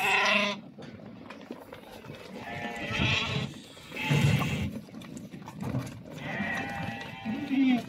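Sheep bleat loudly nearby.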